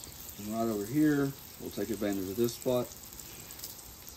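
Oil pours onto a hot griddle and sizzles.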